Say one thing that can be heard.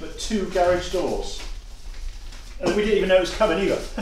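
Papers rustle as a man leafs through them.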